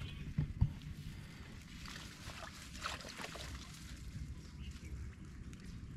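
Grass and leaves rustle as a man pulls at plants close by.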